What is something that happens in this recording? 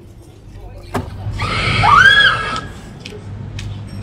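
Women shriek and laugh loudly.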